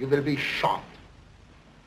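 A man speaks sternly and firmly, close by.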